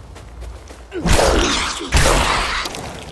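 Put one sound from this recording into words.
A heavy stone pillar slams down with a deep rumbling crash.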